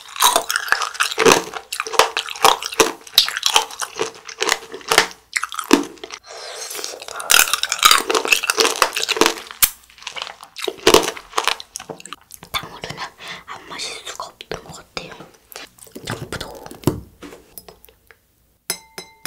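A young girl crunches loudly on hard candy-coated fruit close to a microphone.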